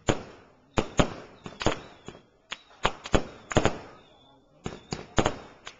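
Fireworks burst with sharp, echoing bangs again and again.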